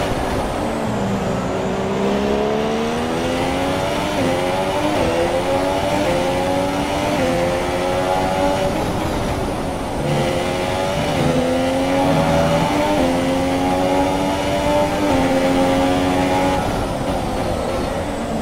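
A Formula One car's engine screams at high revs as it shifts up through the gears in a racing game.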